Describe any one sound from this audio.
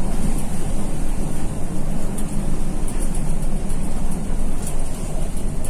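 A vehicle's engine rumbles steadily from inside the cab.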